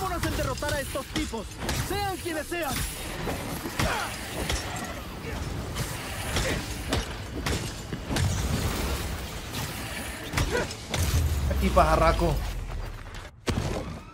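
Punches and impacts thud.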